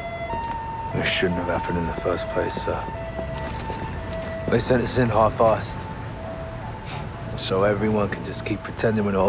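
A younger man answers calmly and quietly.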